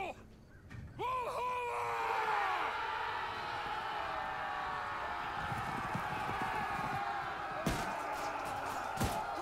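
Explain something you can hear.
A crowd of men roar loudly as they charge into battle.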